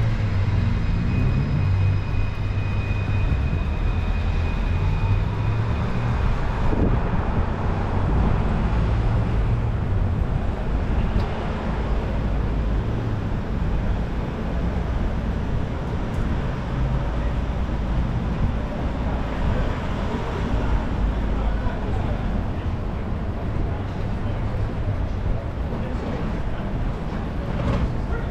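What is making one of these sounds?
City traffic hums steadily along a street outdoors.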